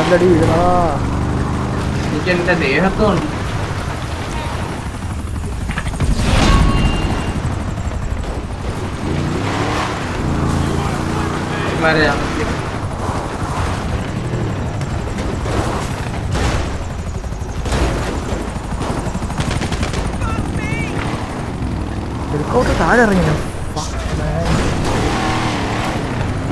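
A monster truck engine rumbles and revs as it climbs over rough ground.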